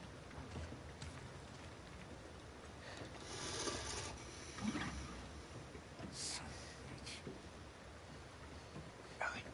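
Water splashes as someone wades slowly through it.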